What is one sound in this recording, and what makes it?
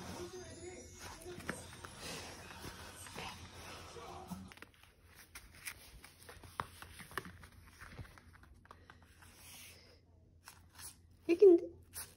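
A small dog's claws click and tap on a hard floor.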